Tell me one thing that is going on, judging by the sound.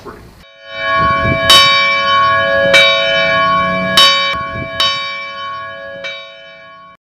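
Church bells ring out loudly, each strike ringing on and slowly fading.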